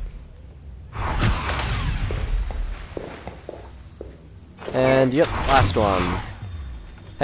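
A magic spell whooshes and crackles in short bursts.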